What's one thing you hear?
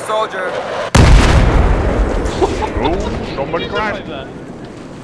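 A loud explosion booms close by and rumbles away.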